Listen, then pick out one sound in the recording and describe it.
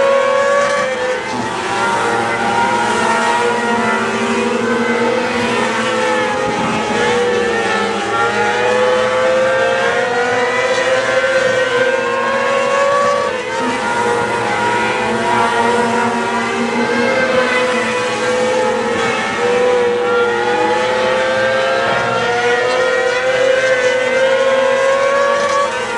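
Several racing car engines roar loudly, rising and falling in pitch as they speed around the track nearby.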